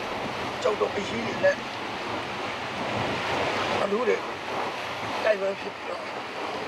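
A man speaks in a strained, pained voice close by.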